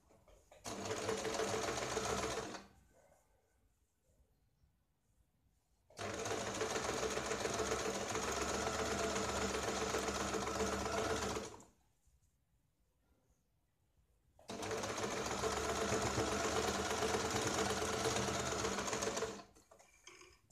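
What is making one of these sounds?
A sewing machine whirs and stitches rapidly in bursts.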